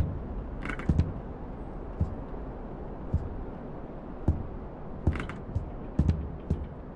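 Footsteps thud slowly on a wooden floor.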